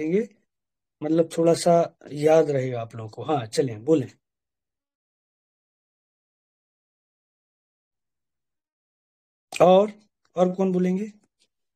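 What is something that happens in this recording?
A man speaks calmly and close to the microphone, with pauses.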